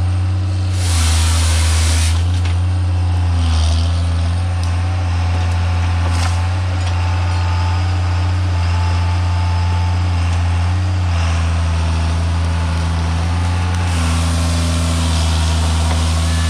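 Hydraulics whine as a machine's arm moves.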